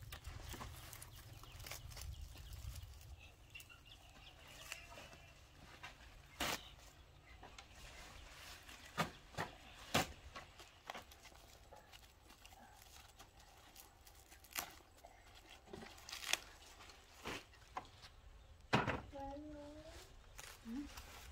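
Large leaves rustle and crackle as they are handled and stacked.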